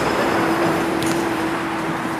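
A boy kicks a soccer ball with a dull thud.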